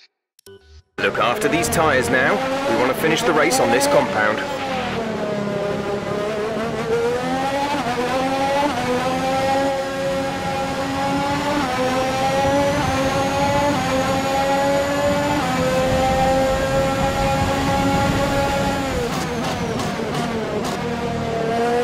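A racing car engine roars and whines higher through the gears, dipping at each shift.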